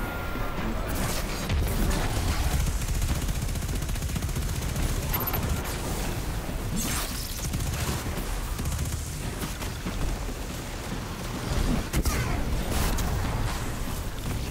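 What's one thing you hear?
Electric energy crackles in loud bursts.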